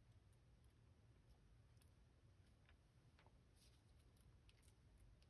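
Small plastic and metal parts click softly as they are handled and set down.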